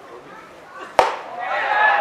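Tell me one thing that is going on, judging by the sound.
A pitched baseball smacks loudly into a leather glove.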